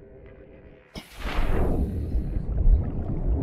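Water rushes and bubbles loudly as a diver exits into the water.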